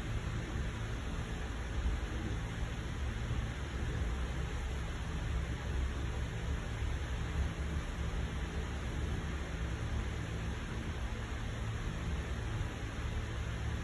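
A printer whirs and hums steadily close by.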